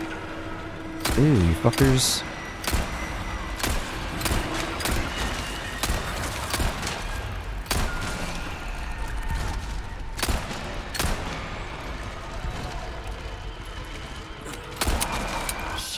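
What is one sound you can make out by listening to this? Gunshots ring out one after another, with a short echo.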